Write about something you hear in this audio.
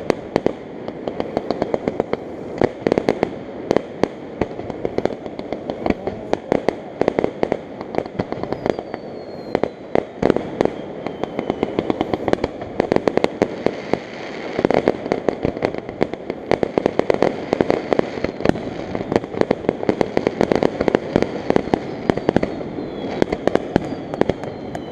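Fireworks burst with loud, rapid bangs and crackles in the distance.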